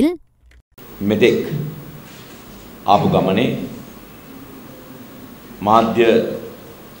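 A man speaks calmly into microphones, in short phrases with pauses.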